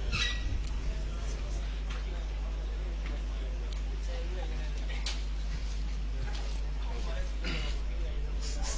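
A man speaks into a microphone in a steady, preaching tone.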